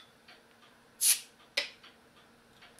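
A bottle cap pops off with a hiss.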